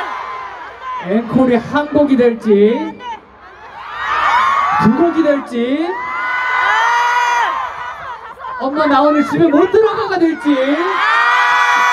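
A young man sings into a microphone over a loudspeaker, with lively pitch changes.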